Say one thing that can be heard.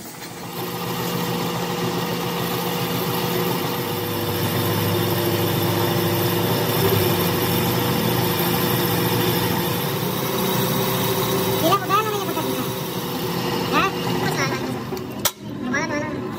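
A cutting tool scrapes against spinning metal.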